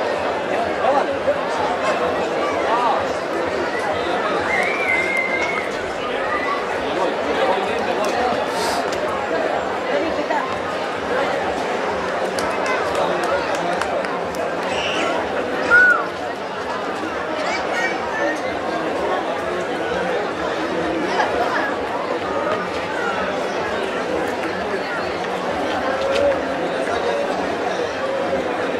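A large outdoor crowd chatters and calls out steadily.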